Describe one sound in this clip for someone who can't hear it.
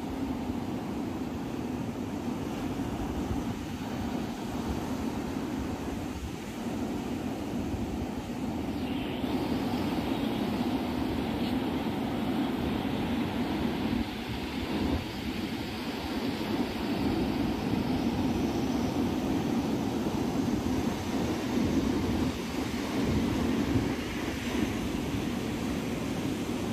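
Waves crash and wash up onto a beach.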